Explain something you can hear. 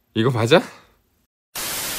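A young woman speaks briefly and calmly, close to a microphone.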